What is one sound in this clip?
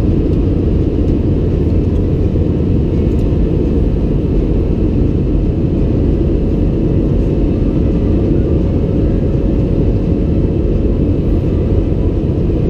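Jet engines roar steadily in a loud, low drone inside an airliner cabin.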